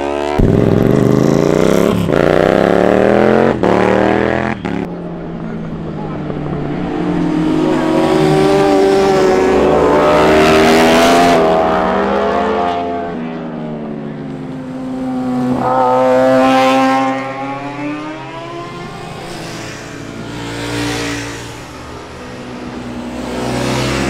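Motorcycle engines roar and rev loudly as they pass by.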